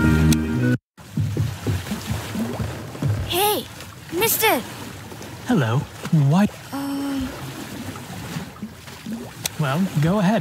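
Water laps gently against a wooden pier.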